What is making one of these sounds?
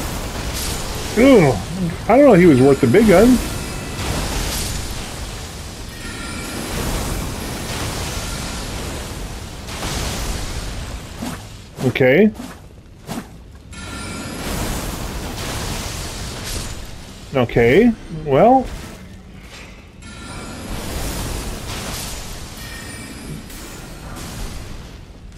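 Magic spells whoosh and burst in a fight.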